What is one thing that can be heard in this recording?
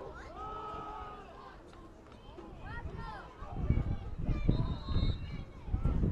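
Football players' pads thump as they collide.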